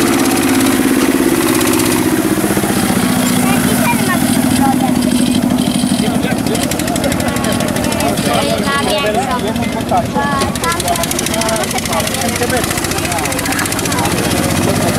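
A small tractor engine chugs and revs loudly nearby, outdoors.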